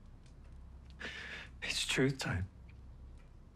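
A middle-aged man speaks quietly and tensely, close by.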